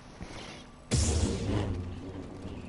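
A lightsaber ignites with a loud crackling whoosh.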